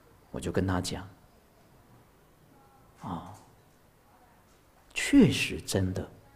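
A man speaks calmly into a microphone, in short phrases with pauses.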